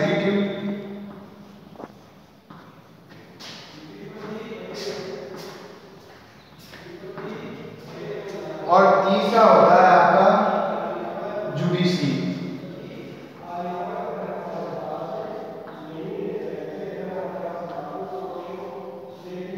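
A man speaks steadily through a clip-on microphone.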